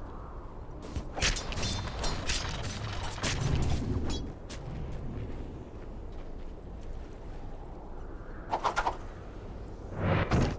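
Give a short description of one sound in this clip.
Spell effects crackle and burst in a game fight.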